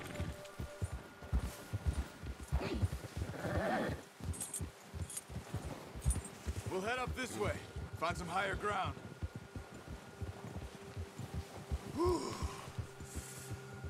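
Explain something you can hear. Horses gallop through deep snow, their hooves thudding.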